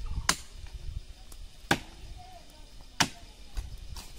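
Axe blows chop sharply into a tree trunk.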